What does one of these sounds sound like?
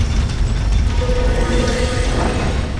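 A magical shimmering chime rings out.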